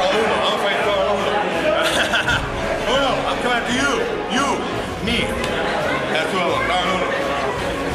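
A man shouts angrily up close.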